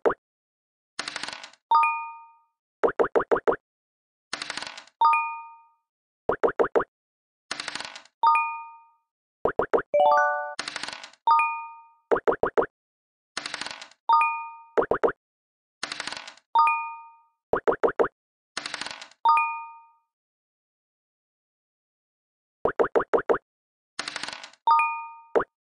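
Digital dice rattle as they roll.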